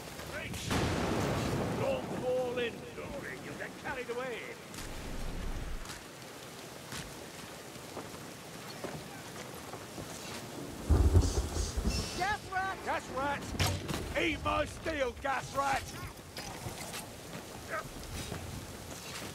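Heavy rain falls steadily.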